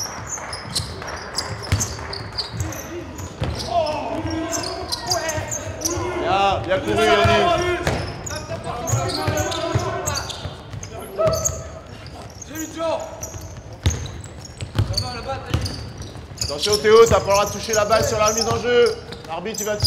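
Basketballs bounce on a hard floor in an echoing hall.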